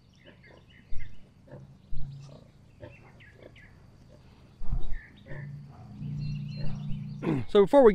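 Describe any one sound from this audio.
A sow grunts softly and rhythmically.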